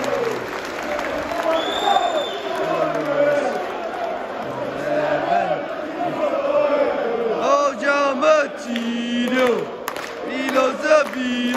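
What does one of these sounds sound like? A large stadium crowd sings loudly together, echoing around the stands.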